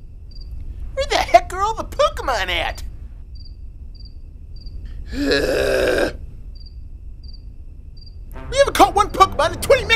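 A young man talks excitedly and loudly, close by.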